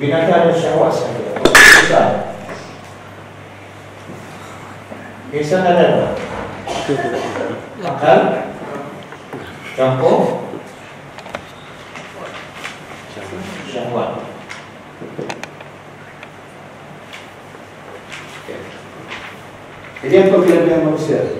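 A middle-aged man speaks calmly through a clip-on microphone, pausing often.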